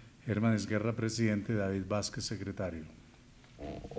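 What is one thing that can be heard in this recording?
An older man speaks calmly into a microphone.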